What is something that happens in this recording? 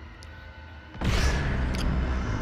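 A lightsaber ignites with a sudden whoosh.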